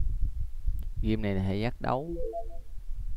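A short rising electronic jingle sounds.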